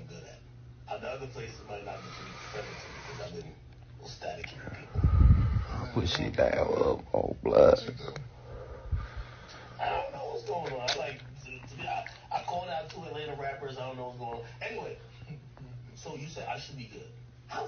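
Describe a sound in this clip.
A young man talks casually, close to a phone microphone.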